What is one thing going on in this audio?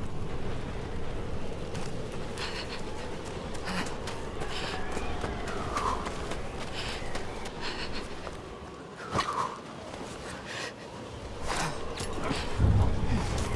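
A blizzard wind roars steadily outdoors.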